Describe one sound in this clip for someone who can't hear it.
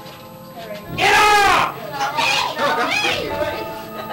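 A man laughs close by.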